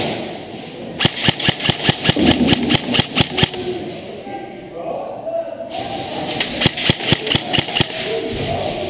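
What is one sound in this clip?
An airsoft rifle fires rapid bursts of sharp shots in a large echoing hall.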